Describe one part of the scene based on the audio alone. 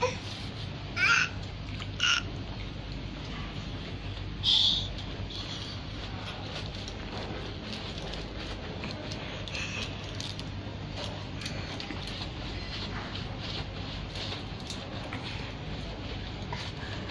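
Hands rub soapy skin with soft squelching sounds.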